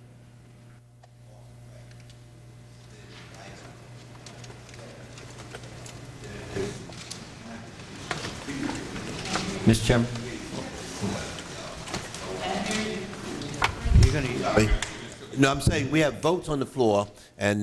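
An elderly man speaks firmly into a microphone.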